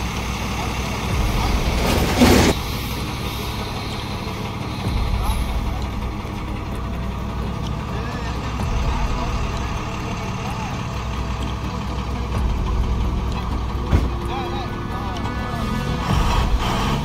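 A truck's diesel engine rumbles steadily at idle.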